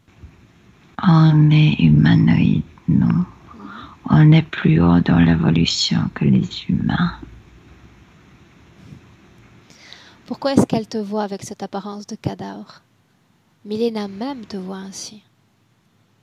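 A woman speaks calmly through a headset microphone over an online call.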